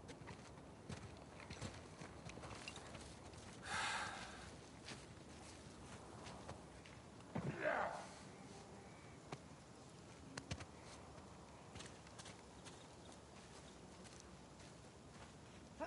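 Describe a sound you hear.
Footsteps crunch through undergrowth.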